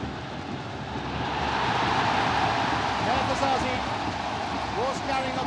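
A stadium crowd's roar swells loudly and then eases.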